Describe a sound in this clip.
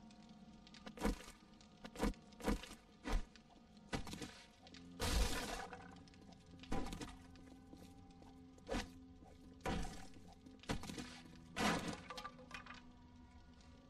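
Wooden objects are struck and broken apart with repeated heavy thuds.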